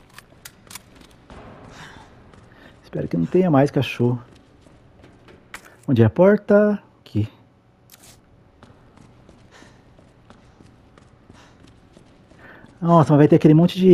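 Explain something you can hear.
Footsteps tap on a hard concrete floor.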